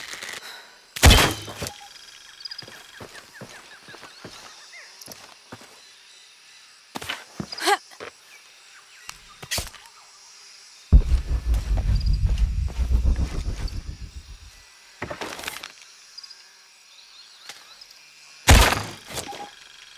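A bow string twangs as an arrow is loosed.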